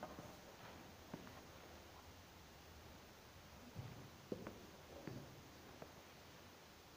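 Footsteps and soft knocks sound in a quiet, echoing hall.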